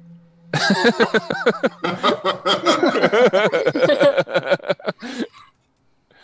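A man laughs loudly over an online call.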